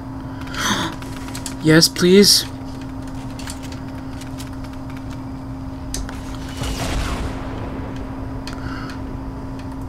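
Wooden ramps snap into place with quick clunks.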